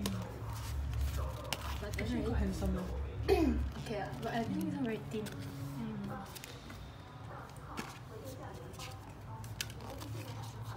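A stiff booklet and cardboard rustle as they are handled close by.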